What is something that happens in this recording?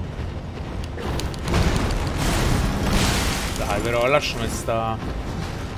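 A heavy blow lands with a loud, rushing crash.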